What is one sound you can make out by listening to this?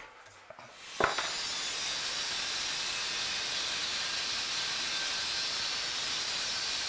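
An angle grinder whines steadily as it cuts through metal.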